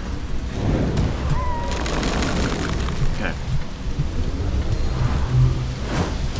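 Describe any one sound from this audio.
Magic blasts crackle and burst in quick bursts.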